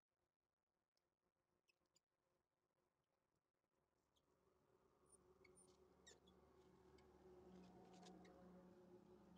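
Metal nuts clink faintly as hands turn them on a wheel hub.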